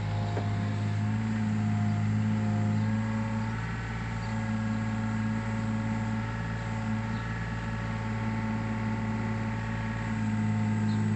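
A hydraulic pump whines as the arm moves.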